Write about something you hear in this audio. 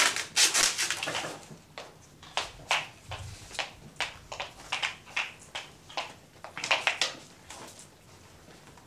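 Footsteps tap across a wooden stage.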